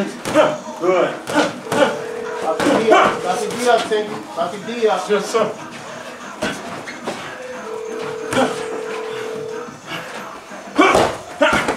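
Boxing gloves thud and smack as punches land.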